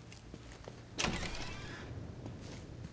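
A heavy door creaks and rattles.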